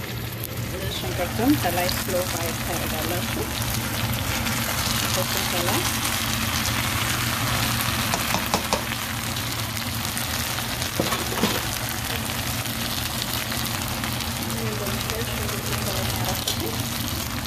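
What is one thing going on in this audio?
Onions sizzle steadily as they fry in a pan.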